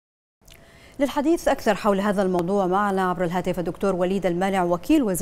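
A woman reads out the news calmly into a microphone.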